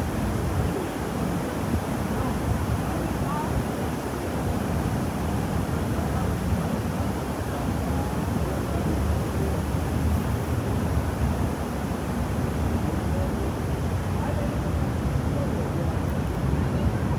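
Distant voices of a crowd murmur outdoors.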